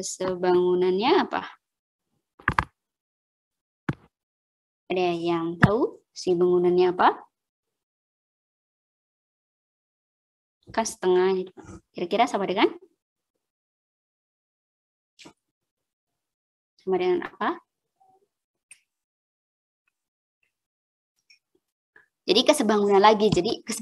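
A young woman speaks calmly in short phrases over an online call, with pauses between them.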